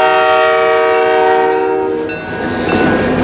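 A train horn blares loudly nearby.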